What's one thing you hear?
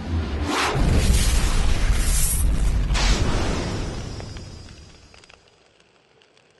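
Flames roar loudly with a deep rumble, then die away.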